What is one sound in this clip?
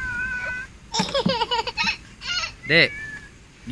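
A toddler babbles and chatters close by.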